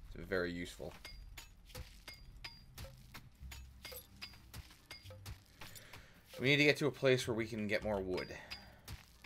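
A small tool strikes packed dirt in quick, repeated knocks.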